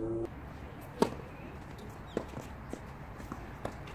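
A tennis racket strikes a ball outdoors.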